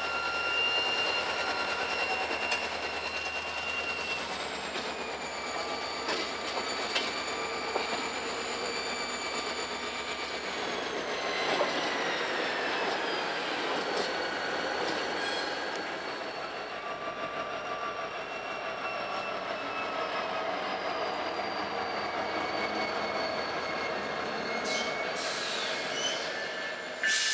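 Freight cars clatter over the track joints.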